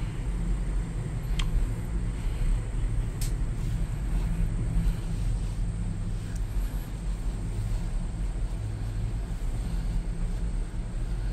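A low steady rumble and hum fill an enclosed cabin.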